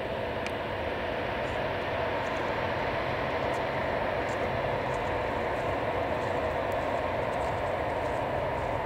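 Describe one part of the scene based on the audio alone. A jet airliner's engines roar steadily as it rolls along a runway.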